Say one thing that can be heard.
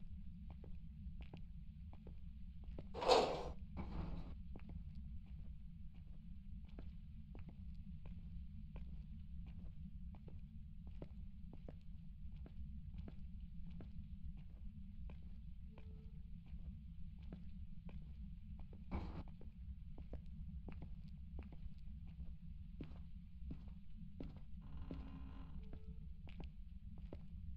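Footsteps tap steadily on a hard floor in a quiet, echoing space.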